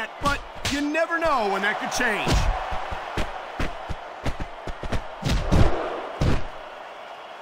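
Heavy punches and kicks land with dull thuds.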